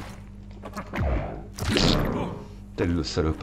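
A creature growls loudly up close.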